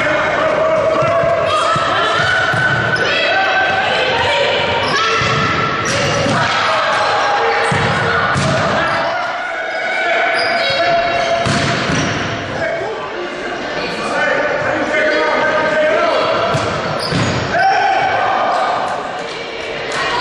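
Young girls shout and call out to each other during a game.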